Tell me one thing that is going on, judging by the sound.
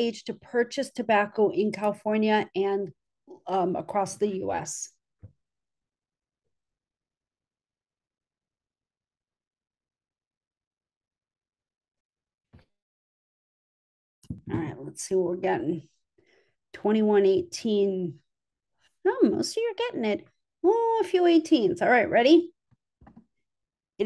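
A young woman speaks calmly through an online call, with long pauses.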